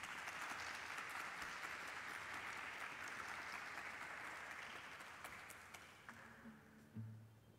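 An audience applauds in a large hall and the applause fades.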